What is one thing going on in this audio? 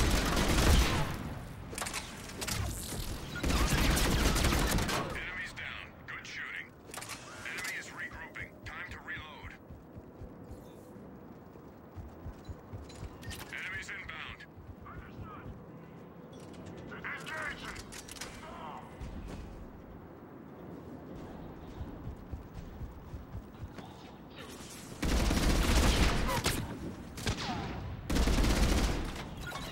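Gunfire rings out in loud, rapid bursts.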